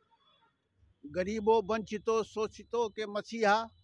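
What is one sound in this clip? A middle-aged man speaks loudly into a microphone, heard through a loudspeaker.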